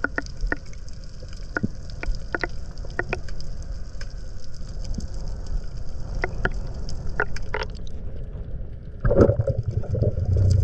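Water rumbles low and muffled as a swimmer glides underwater.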